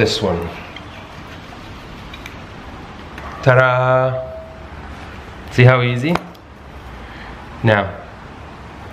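Metal tool parts clink and clatter as they are handled.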